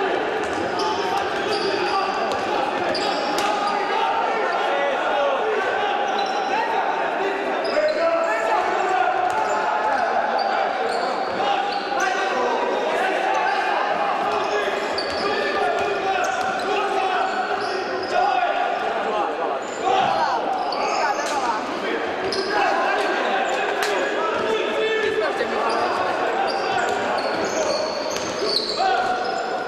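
A crowd of spectators chatters and shouts in an echoing hall.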